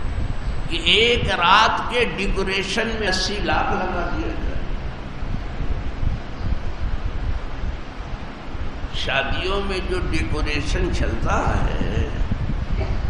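An elderly man speaks steadily, heard through a microphone.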